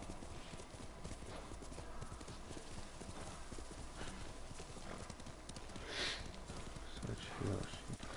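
Horse hooves pound rapidly on grass and dirt.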